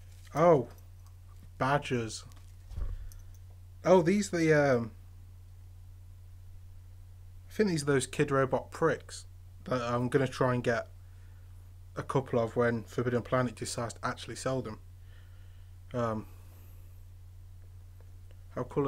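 A young man speaks casually, close to a microphone, in short bursts with pauses.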